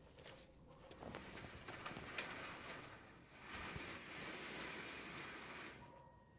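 A cloth sheet rustles as it is pulled down.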